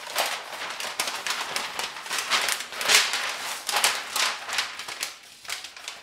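A large sheet of paper rustles and crinkles as hands spread it out.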